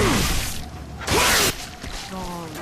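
A blast bursts with a sharp crack.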